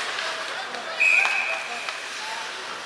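A referee's whistle blows a short, shrill blast.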